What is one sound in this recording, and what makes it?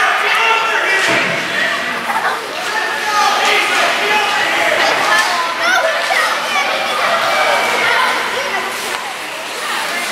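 A crowd of spectators chatters and cheers throughout a large echoing rink.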